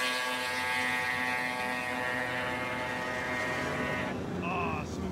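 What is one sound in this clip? A snowmobile engine whines at a steady high pitch in the distance.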